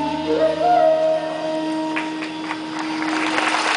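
A bamboo flute plays a melody.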